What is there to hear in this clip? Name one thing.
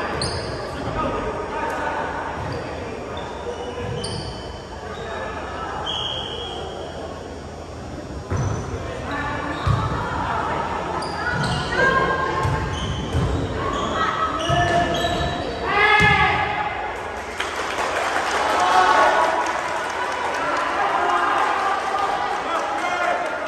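Sneakers squeak sharply on a gym floor, in a large echoing hall.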